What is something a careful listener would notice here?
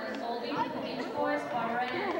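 A woman speaks to the audience through a microphone.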